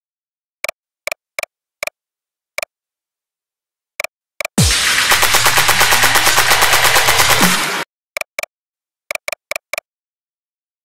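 Short electronic beeps tick as menu choices change.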